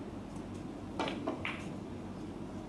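Snooker balls knock together with a clack.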